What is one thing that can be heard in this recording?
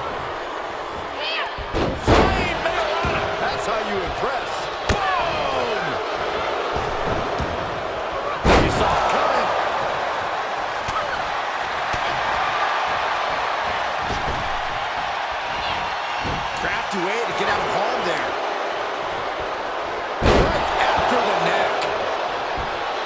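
A large crowd cheers steadily in a big arena.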